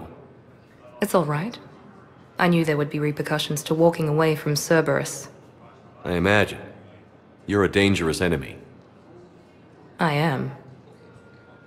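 A woman speaks calmly and warmly.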